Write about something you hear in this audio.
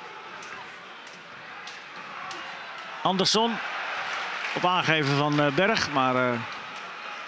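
A large crowd murmurs steadily in an open stadium.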